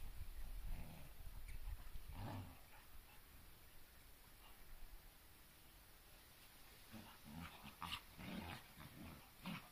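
Two dogs growl and snarl as they play-fight.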